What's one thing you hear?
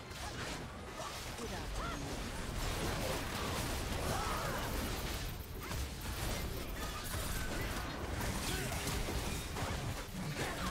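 Spell effects crackle and burst in a fight.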